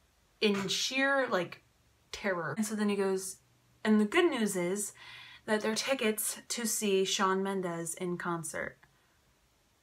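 A young woman talks calmly and close up.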